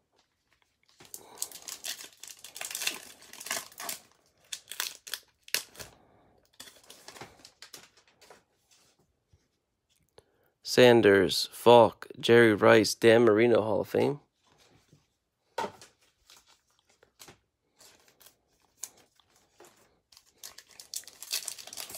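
Foil card packs crinkle and rustle as hands tear them open.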